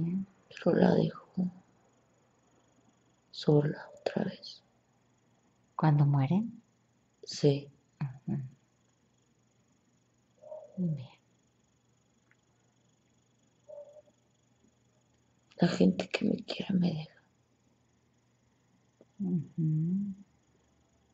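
A young woman speaks softly in short bursts close by.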